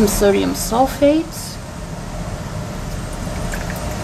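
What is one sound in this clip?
Water pours into a glass beaker.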